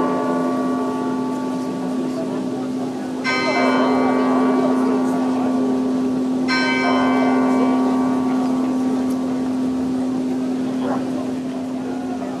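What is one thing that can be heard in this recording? Carillon bells ring out in a slow melody, with long ringing tones.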